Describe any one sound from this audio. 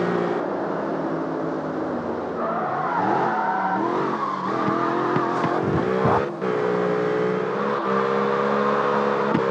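A car engine roars and revs up and down steadily.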